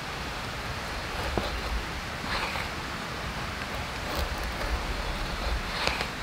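A knife shaves and scrapes thin curls from a stick of wood.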